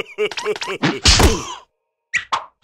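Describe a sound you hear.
A cartoon creature falls over with a thump.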